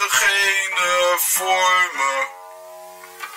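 A man sings close to a microphone.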